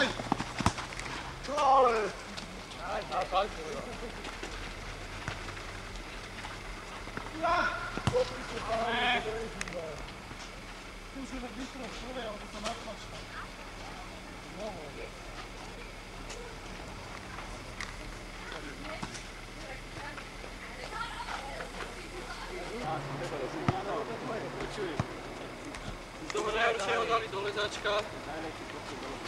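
A football is kicked on a sandy pitch.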